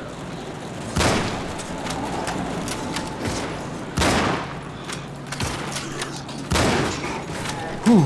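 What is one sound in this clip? A rifle fires loud, echoing shots.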